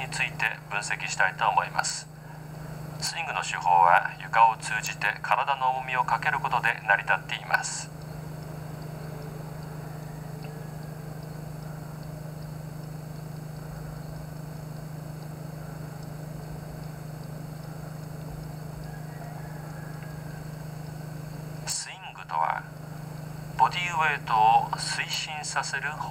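A woman speaks calmly through a microphone, heard through a television loudspeaker.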